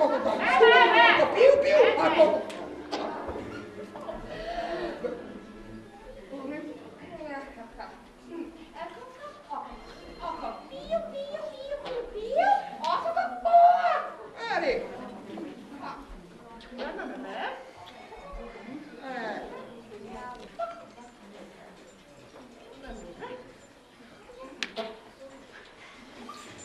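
Puppeteers speak in animated, playful character voices.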